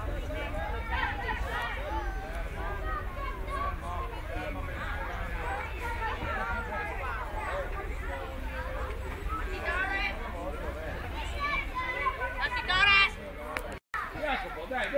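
Children and adults chatter and call out across an open field.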